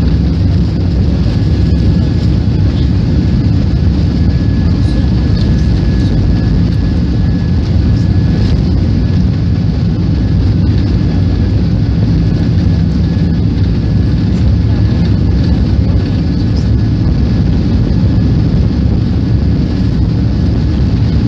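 Airplane wheels rumble and bump over a runway.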